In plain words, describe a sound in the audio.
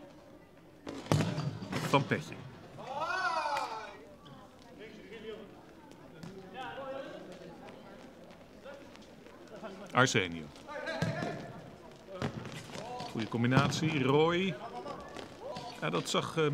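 A ball is kicked hard on an indoor court.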